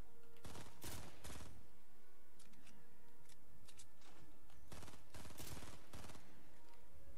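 A rifle fires in short rapid bursts.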